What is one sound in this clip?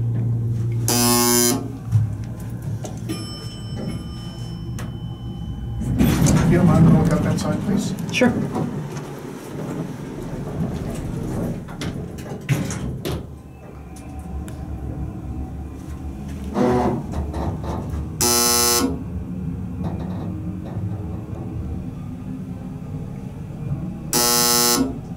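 An elevator chime dings several times.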